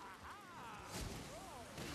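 Fire bursts with a whoosh.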